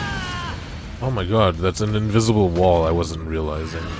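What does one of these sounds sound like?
A loud explosion booms in a video game.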